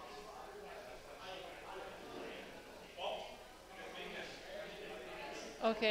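People talk and call out in a large echoing hall.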